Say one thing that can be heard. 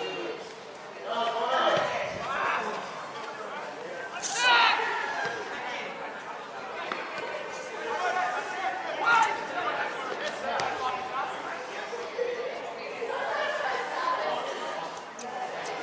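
People call out loudly from the sideline nearby.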